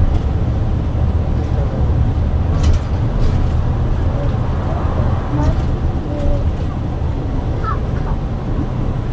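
Loose fittings inside a moving bus rattle and clatter now and then.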